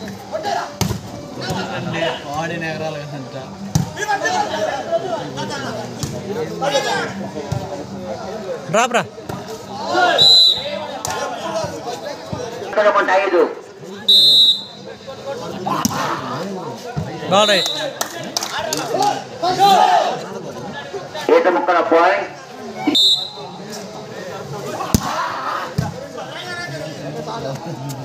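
Young men shout and call out with animation outdoors.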